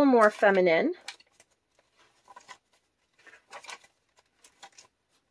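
Paper pages rustle and flip as hands turn them.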